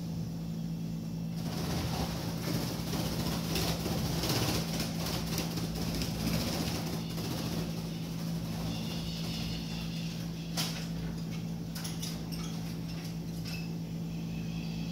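Small caged birds chirp and twitter nearby.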